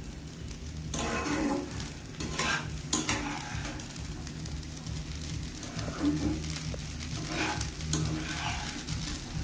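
A spatula scrapes and stirs rice in a metal pan.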